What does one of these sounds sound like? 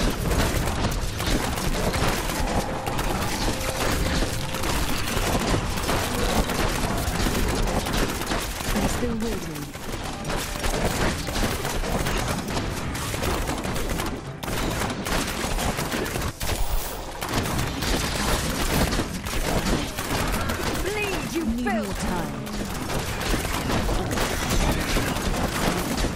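Arrows fire rapidly in a video game battle.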